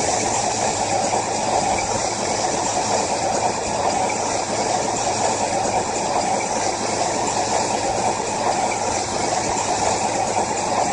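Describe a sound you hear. An engine rumbles steadily as a vehicle climbs over rough ground.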